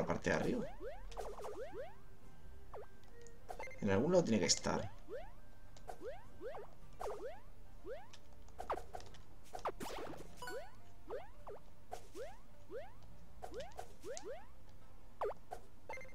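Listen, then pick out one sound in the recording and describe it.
Quick falling chirps sound from a game as a small character jumps again and again.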